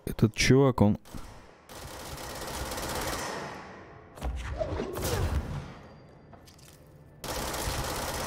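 A pistol fires several sharp shots.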